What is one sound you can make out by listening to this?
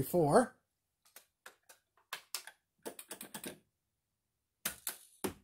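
Arcade buttons click under a hand.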